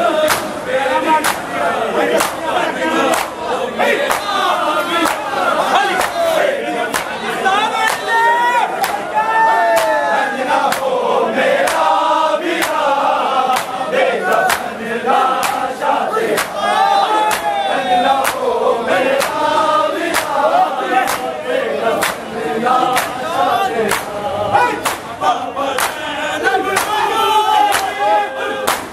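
Men chant loudly together in an echoing street.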